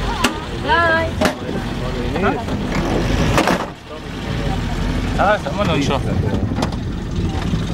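A vehicle's body rattles and knocks over bumps.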